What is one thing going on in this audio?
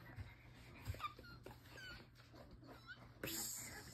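A puppy whimpers with short, high squeaks.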